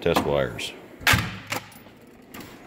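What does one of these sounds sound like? A metal tool drawer slides and clunks shut.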